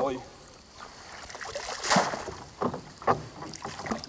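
Water splashes and drips as a fishing net is pulled from a river.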